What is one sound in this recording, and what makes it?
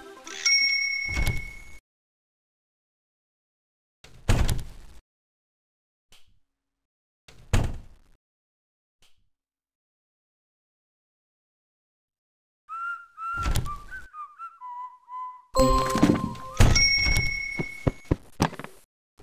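A door opens in a video game.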